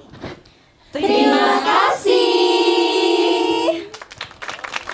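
A group of young women call out together in unison through microphones.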